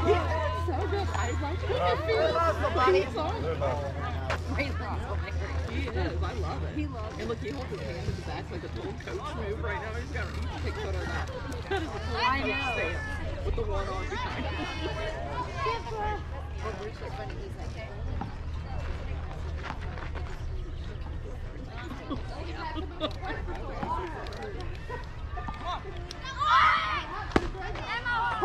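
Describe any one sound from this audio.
Young players call out and cheer across an open field, heard from a distance.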